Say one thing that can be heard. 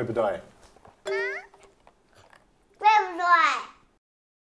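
A young child speaks in a high voice.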